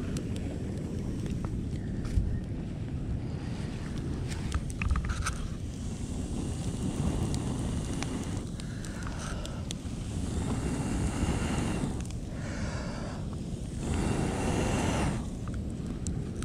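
A small fire crackles softly.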